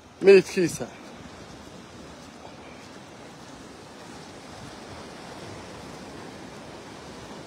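Sea waves wash onto a rocky shore.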